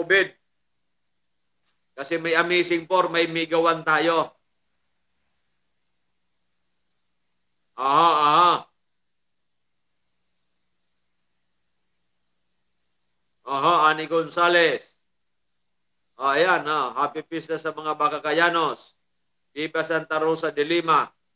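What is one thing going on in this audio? A middle-aged man speaks calmly into a close microphone, pausing often.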